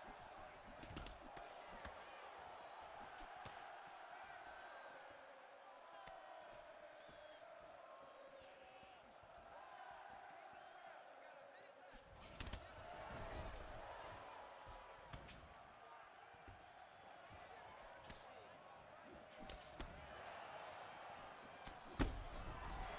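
Punches land on a body with dull thuds.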